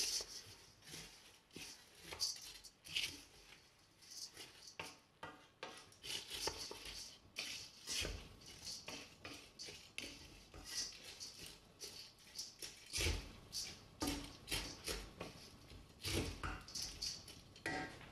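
A wooden spoon scrapes and taps against the inside of a metal pot.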